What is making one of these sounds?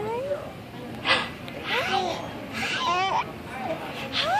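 A baby laughs.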